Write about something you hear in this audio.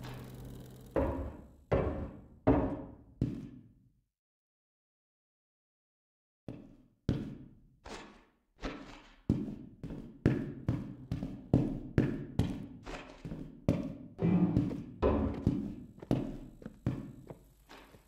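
Footsteps thud steadily across a hard floor.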